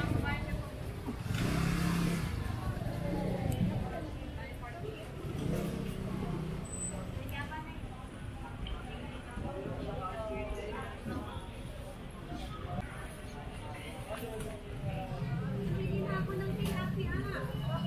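A busy crowd of men and women chatter nearby outdoors.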